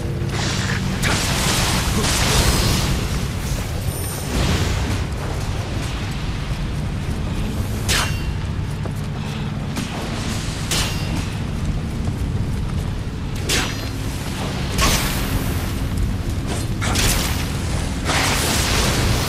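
A sword swishes and clangs against metal.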